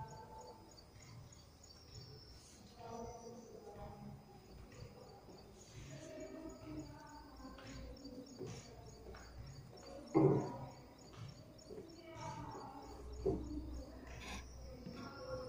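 A woman speaks slowly and clearly, nearby in a room.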